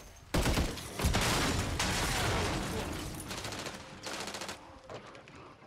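Debris crackles and patters after an explosion.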